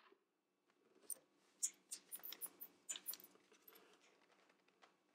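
A plastic blender jar clacks as it is lifted off its base.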